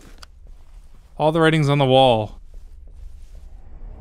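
Footsteps shuffle softly on a hard floor.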